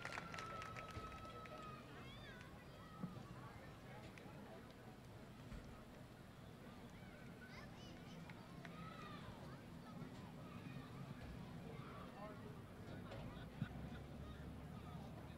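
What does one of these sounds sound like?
A crowd chatters and murmurs in the open air.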